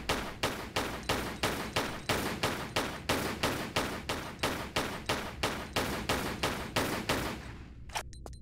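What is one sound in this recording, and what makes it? Pistol shots fire in a rapid, steady rhythm.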